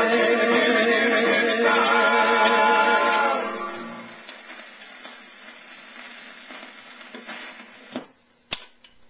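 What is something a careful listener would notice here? Music plays from a record player and fades away.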